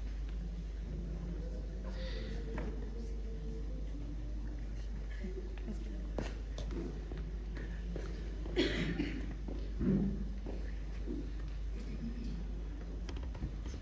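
A choir of men and women sings together in a large room.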